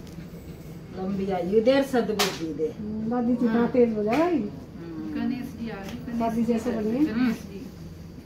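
A woman talks softly to a baby nearby.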